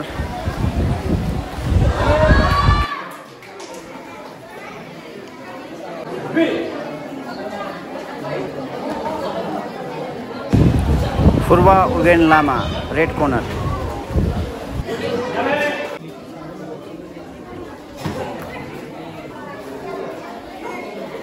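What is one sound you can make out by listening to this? A crowd of children and adults chatters and cheers in an echoing hall.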